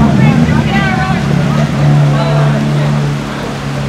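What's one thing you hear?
Tyres hiss on a wet road as a vehicle drives past.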